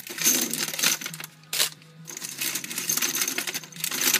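Paper crinkles and rustles in a hand.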